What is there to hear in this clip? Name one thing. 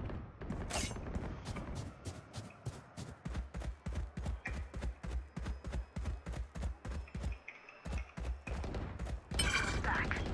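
Footsteps run quickly and steadily on hard ground.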